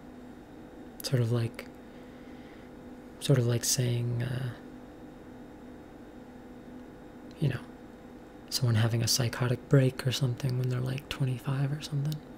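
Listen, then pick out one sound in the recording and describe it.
A young woman speaks calmly and casually, close by, in short bursts with pauses.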